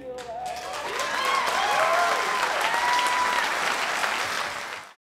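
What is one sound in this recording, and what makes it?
A man whistles loudly into a microphone.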